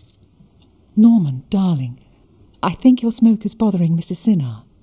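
A middle-aged woman speaks with animation nearby.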